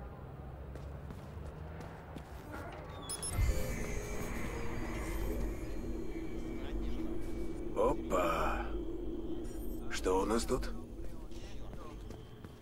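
Footsteps walk briskly across a hard floor.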